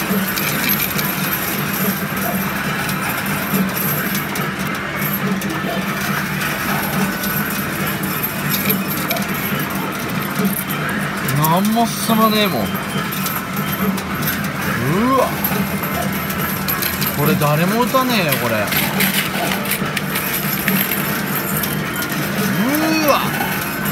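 Coins clink and slide against each other as a pusher shoves them forward.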